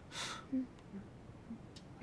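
A woman hums softly.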